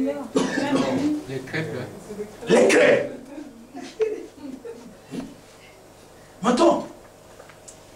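A man preaches with animation in a room with a slight echo, his voice rising into loud bursts.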